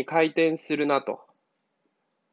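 A young man speaks clearly and close by, explaining.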